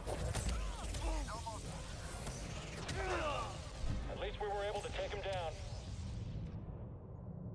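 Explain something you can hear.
A fiery explosion roars and crackles.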